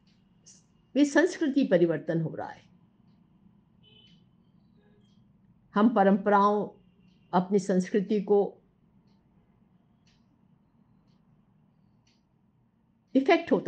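An elderly woman speaks calmly, in short phrases with pauses.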